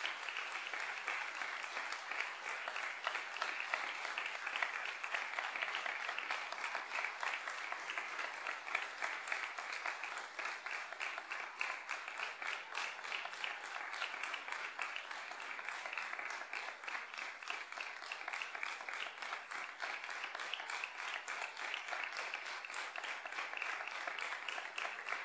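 A large audience claps loudly and steadily in a big hall.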